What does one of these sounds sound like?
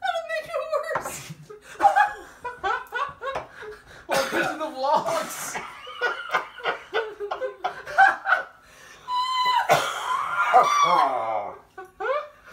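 Women laugh nearby.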